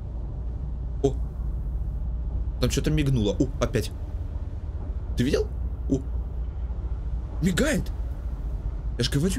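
A young man speaks in short bursts close to a microphone.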